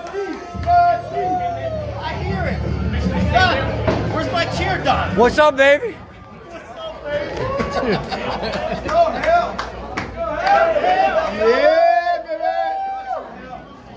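A crowd in a large echoing hall cheers and shouts.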